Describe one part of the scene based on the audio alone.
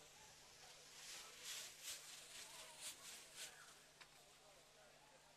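Food sizzles and rattles in a hot wok.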